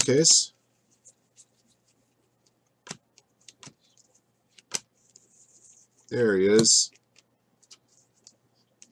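Trading cards flick and rustle between fingers.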